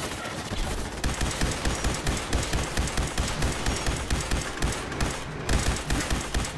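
A laser rifle fires in rapid bursts.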